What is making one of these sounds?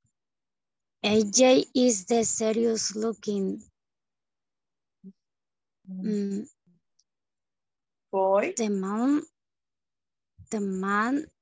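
A woman speaks calmly over an online call, in short phrases with pauses.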